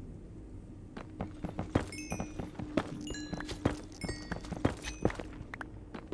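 A pickaxe chips at stone with rapid knocks.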